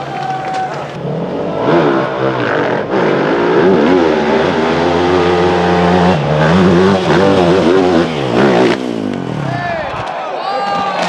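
A dirt bike engine revs hard and roars up a slope.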